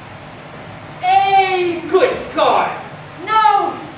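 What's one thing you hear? A woman exclaims loudly and dramatically in an echoing hall.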